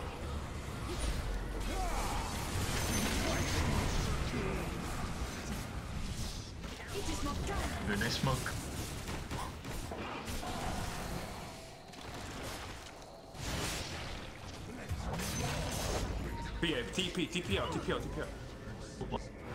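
Game spells and hits crash and whoosh in a busy fight.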